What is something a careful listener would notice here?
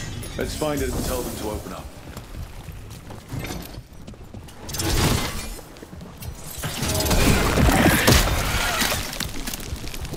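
Magic blasts crackle and roar in bursts.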